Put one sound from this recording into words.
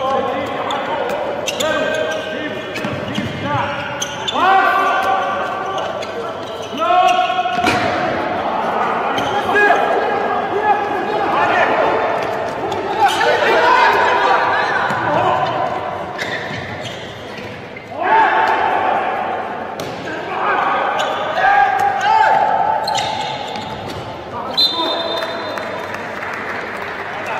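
A ball bounces and thuds on the court.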